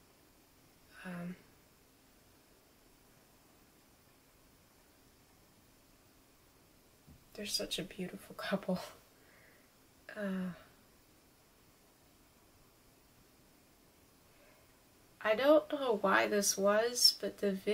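A young woman speaks nearby, hesitantly and then with rising agitation.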